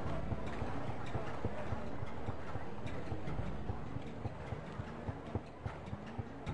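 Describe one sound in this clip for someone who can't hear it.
Quick footsteps thud steadily on pavement as someone runs.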